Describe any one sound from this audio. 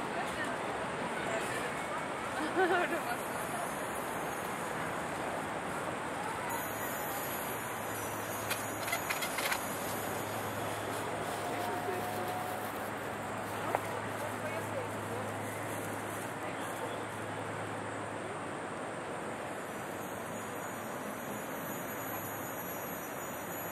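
A crowd of people murmurs outdoors in the distance.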